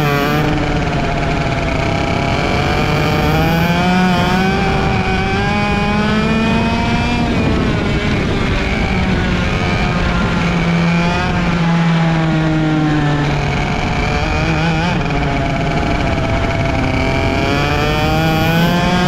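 A kart engine close by drones loudly, its pitch rising and falling as it speeds up and slows down.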